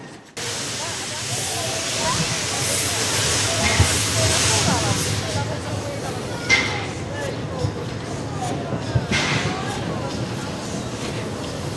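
A steam locomotive hisses loudly as it releases steam.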